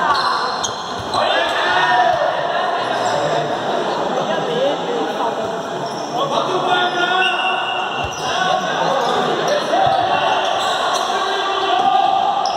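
A ball thuds as players kick it.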